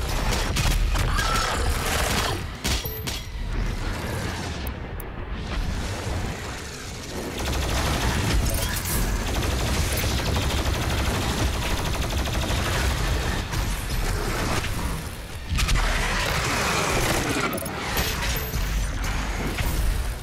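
Guns fire in rapid bursts with heavy booms.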